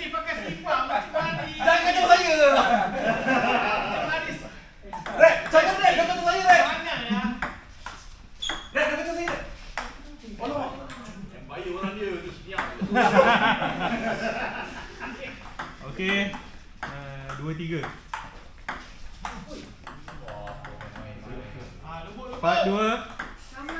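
A ping pong ball clicks sharply back and forth on a table and paddles.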